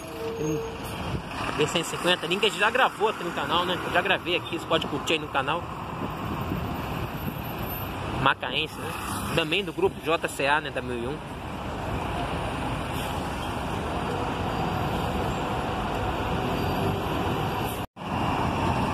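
A bus engine rumbles as the bus pulls away.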